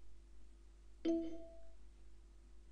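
A computer notification chimes once.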